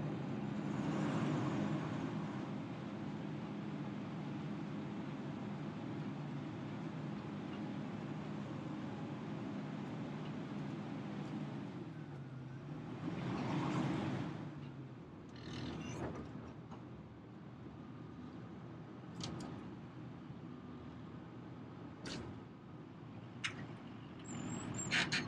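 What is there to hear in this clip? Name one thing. A heavy machine's diesel engine rumbles steadily close by, then quietens to a lower idle.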